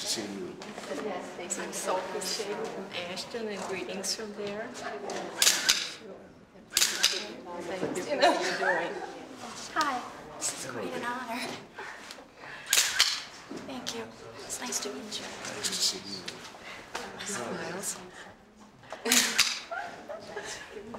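Middle-aged women chat and laugh close by.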